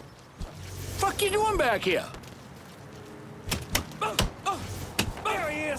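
A man speaks gruffly, close by.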